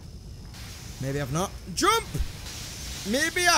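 A young man speaks into a close microphone with animated, rising and falling exclamations.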